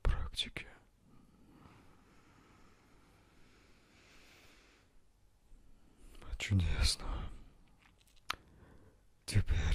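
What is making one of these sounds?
A young man speaks calmly and close into a microphone.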